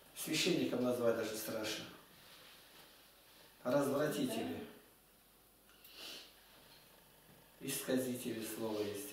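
An elderly man speaks calmly, close by, in short spells.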